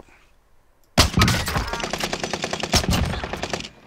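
A sniper rifle fires a loud, echoing shot.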